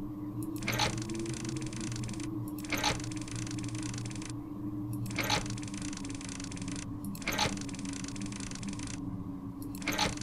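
A clockwork machine whirs and rattles steadily.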